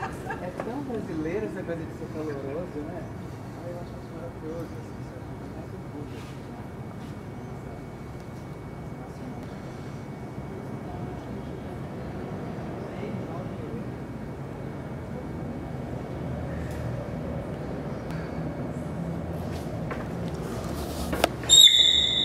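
Several people chat nearby outdoors.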